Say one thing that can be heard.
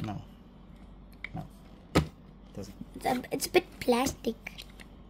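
Hard plastic parts of a toy motorcycle tap and click as it is handled.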